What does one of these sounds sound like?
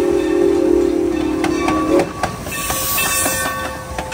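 A steam locomotive rumbles past close by, its wheels clanking on the rails.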